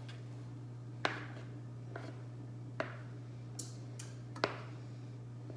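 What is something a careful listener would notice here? A wooden spoon knocks against a plastic mixing bowl.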